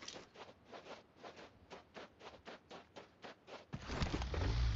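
Footsteps pad quickly on dry ground.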